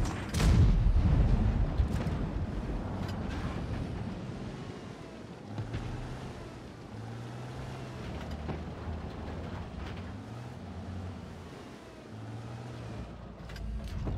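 A heavy tank engine rumbles and whines as the tank drives over rough ground.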